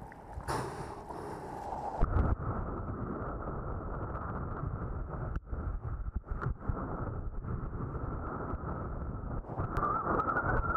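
Water splashes and rushes under a board.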